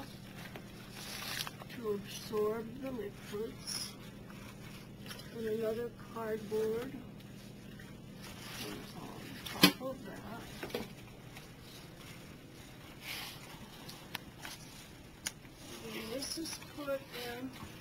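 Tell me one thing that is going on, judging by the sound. Cardboard sheets rustle and slide as they are handled.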